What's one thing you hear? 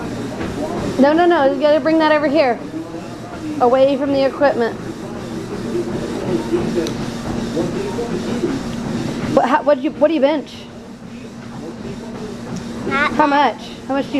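A young girl talks excitedly in a high voice close by.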